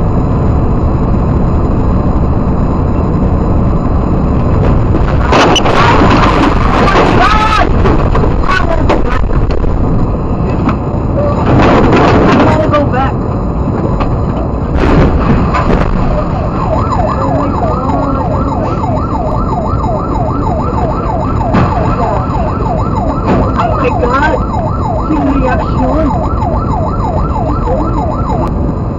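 A heavy bus engine drones steadily.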